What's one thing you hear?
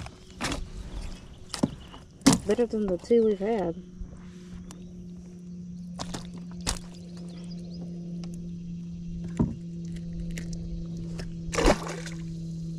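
A fish flaps and thumps against a hard plastic boat.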